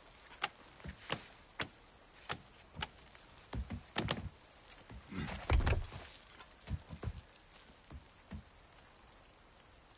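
Hands and feet knock against wooden poles while climbing.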